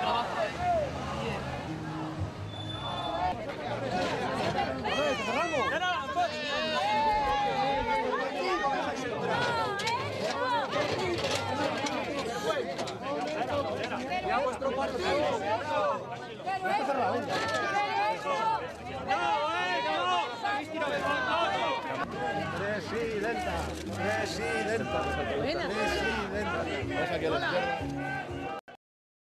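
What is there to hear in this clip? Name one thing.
A crowd of men and women shout and talk over one another close by.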